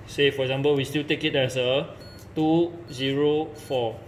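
A keypad button clicks softly as it is pressed.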